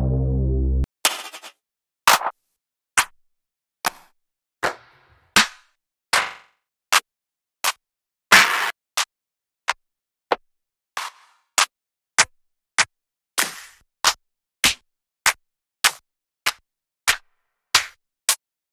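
Short, sharp clap sounds play one after another at a steady pace.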